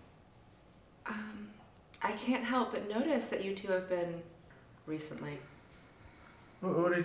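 A woman speaks calmly and clearly nearby.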